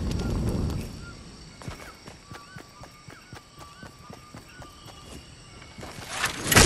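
Footsteps patter quickly across grass.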